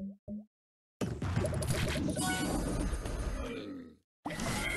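Game effects chime and burst loudly.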